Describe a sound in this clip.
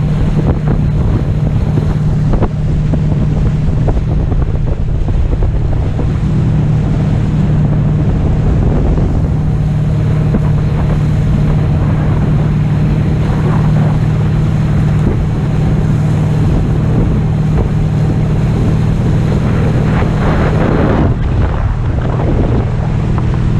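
Wind roars loudly past close by.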